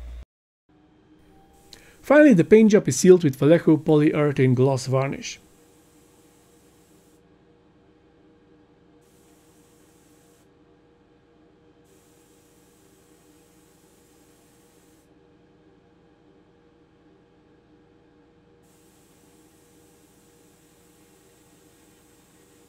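An airbrush hisses softly as it sprays paint in short bursts.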